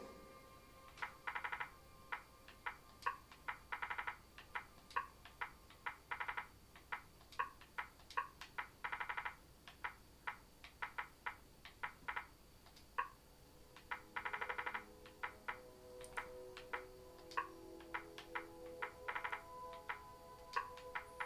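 Short electronic menu clicks tick one by one and in quick bursts.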